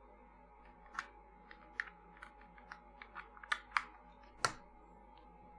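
A plastic case knocks lightly as it is set down on a hard surface.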